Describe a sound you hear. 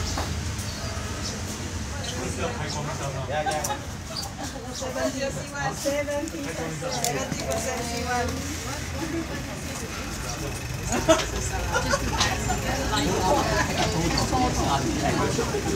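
A crowd of men and women chat nearby.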